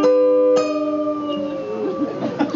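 Acoustic guitars and a banjo ring out a final chord that fades.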